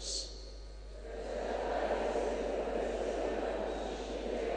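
A large congregation sings together in an echoing hall.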